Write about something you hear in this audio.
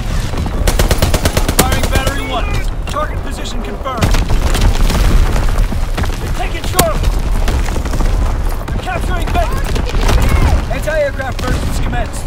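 Explosions rumble and boom nearby.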